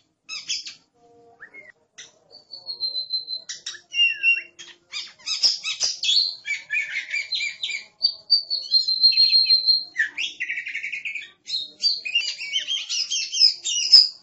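A songbird sings a varied, lively song of whistles, trills and chirps close by.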